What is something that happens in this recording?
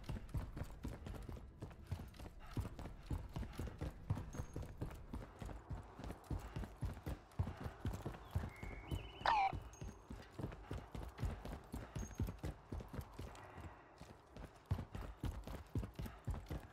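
Quick footsteps thud steadily on a hard floor and stone stairs.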